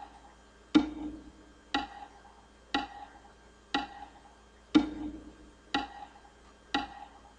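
Single plucked notes play one at a time at a slow, steady beat.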